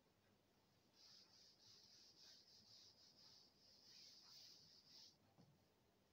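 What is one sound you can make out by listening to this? A cloth rubs softly across a chalkboard.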